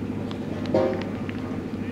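A cricket bat cracks against a ball.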